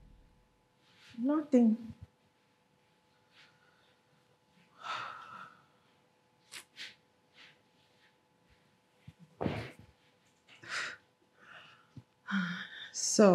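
A woman speaks in short, emotional bursts nearby.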